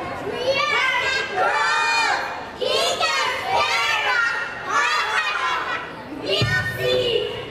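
A group of young children sing together through microphones.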